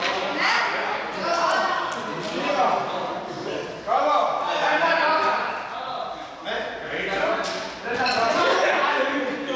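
Several young men talk and call out in a large echoing hall.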